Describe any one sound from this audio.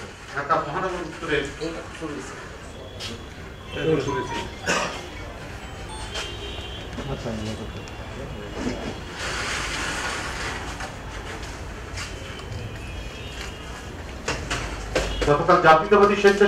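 An elderly man reads out a statement into microphones, close by.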